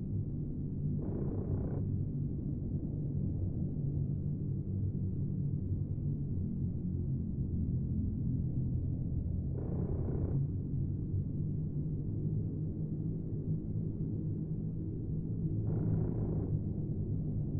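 Explosions thump in short bursts far below.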